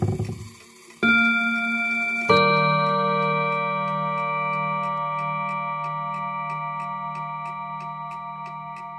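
A clock gong strikes and rings on, slowly fading.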